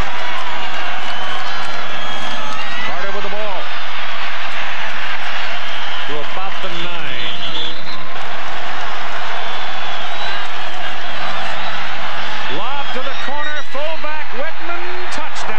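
A large crowd roars steadily outdoors.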